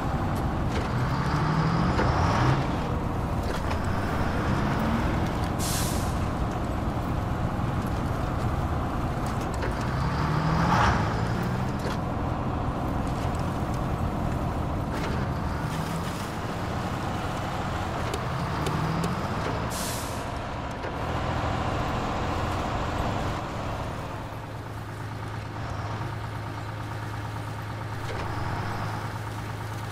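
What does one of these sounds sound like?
A heavy truck engine rumbles and revs, its pitch rising with each gear.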